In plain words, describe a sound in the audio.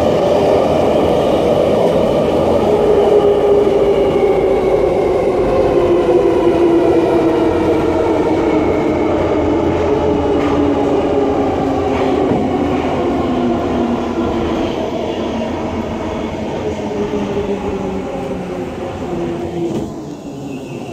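A metro train rumbles through a tunnel and slows down with a falling whine.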